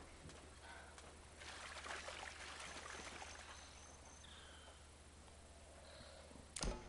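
Feet wade and splash through shallow water.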